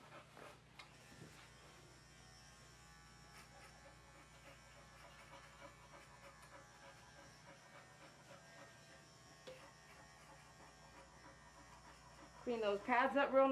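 An electric clipper buzzes softly.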